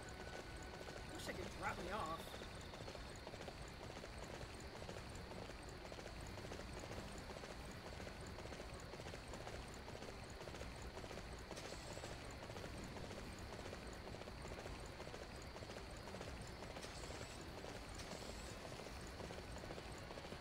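A horse's hooves thud as it gallops.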